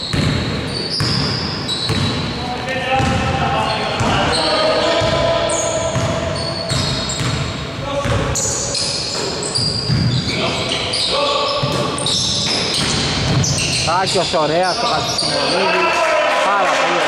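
A basketball thumps on a wooden floor.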